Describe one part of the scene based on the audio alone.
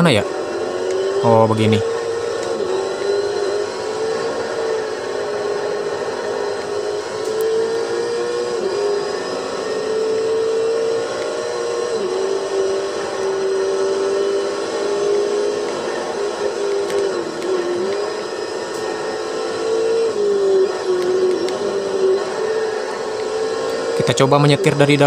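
A racing car engine roars steadily, its pitch rising as it speeds up and dropping when it slows.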